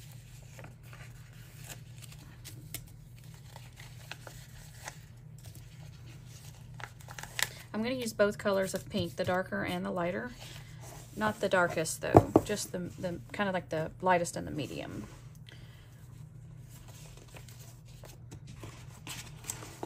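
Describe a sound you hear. Sticker paper rustles and crinkles softly as it is peeled and pressed down.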